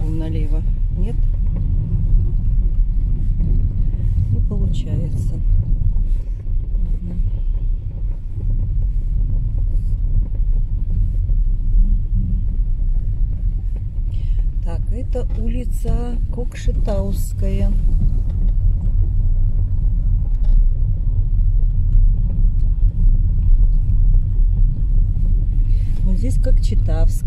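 A car engine rumbles steadily at low speed.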